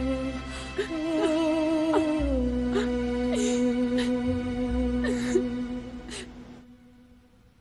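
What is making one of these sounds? A young woman screams and cries out in distress.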